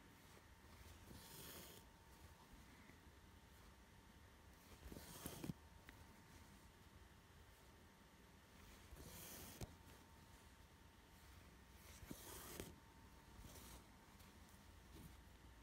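Thread rasps close by as it is pulled through coarse fabric, again and again.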